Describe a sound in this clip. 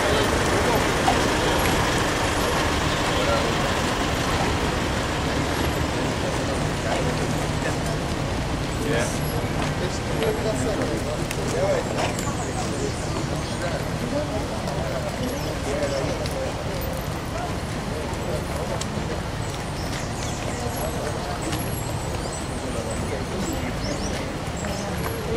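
A crowd of men and women murmurs nearby outdoors.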